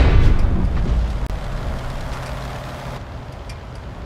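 A loud explosion booms and slowly rumbles away.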